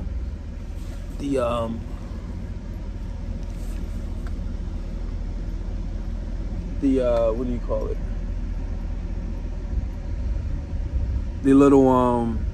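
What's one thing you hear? A car engine rumbles low and steady.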